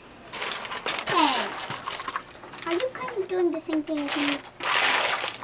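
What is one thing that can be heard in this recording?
Young girls talk nearby.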